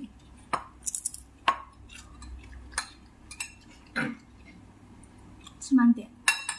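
A young woman slurps and chews food noisily close by.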